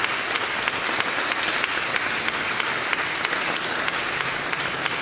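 An accordion plays.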